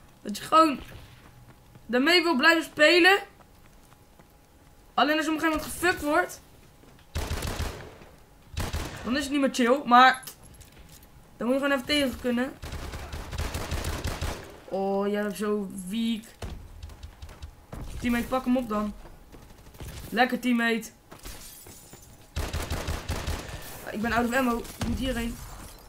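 A boy talks with animation into a microphone, close by.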